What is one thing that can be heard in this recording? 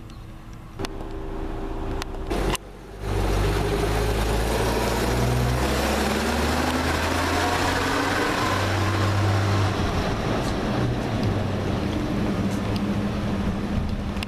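An old bus engine rumbles and revs as the bus drives past and away.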